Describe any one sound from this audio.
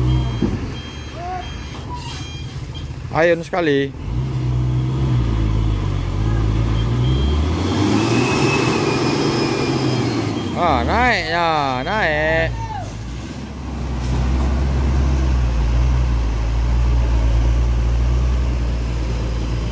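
A heavy truck engine rumbles and strains at low speed.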